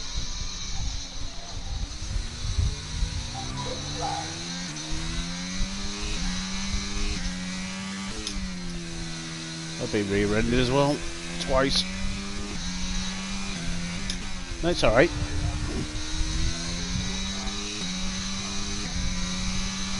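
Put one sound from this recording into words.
A racing car engine roars, climbing in pitch again and again as it shifts up through the gears.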